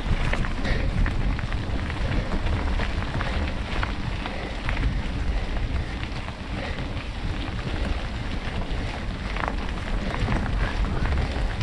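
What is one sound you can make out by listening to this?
Bicycle tyres crunch steadily over gravel.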